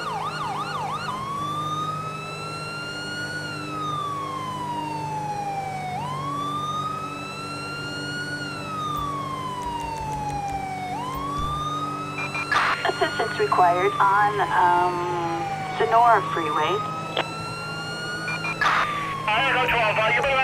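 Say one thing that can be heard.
A police siren wails slowly up and down.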